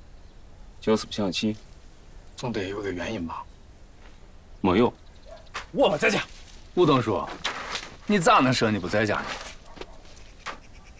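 A middle-aged man speaks close by with animation.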